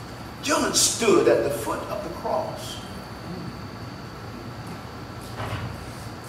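An elderly man preaches into a microphone in a room with slight echo.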